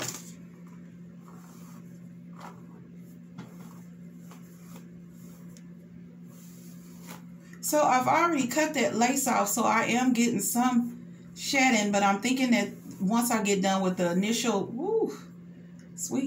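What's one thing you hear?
A brush swishes through long hair.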